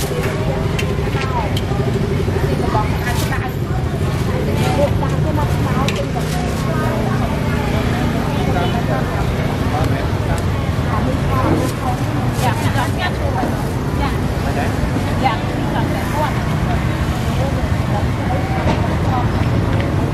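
Motorbike engines idle and pass by on a busy street.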